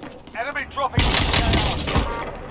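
Loud gunshots fire in a quick burst.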